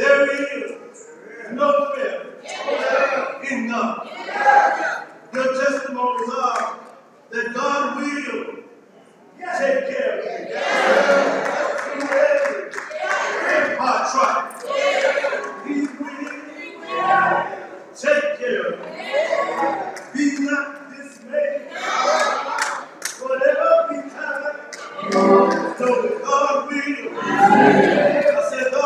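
An elderly man speaks with animation into a microphone, heard through a loudspeaker in an echoing hall.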